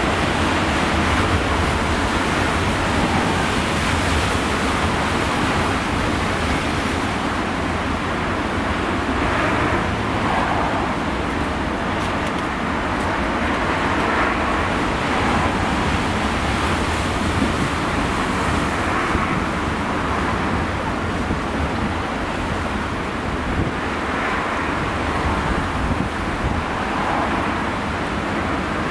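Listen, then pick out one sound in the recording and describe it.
Strong wind blusters outdoors, buffeting loudly.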